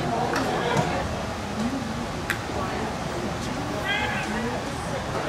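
A crowd murmurs and chatters in a stadium.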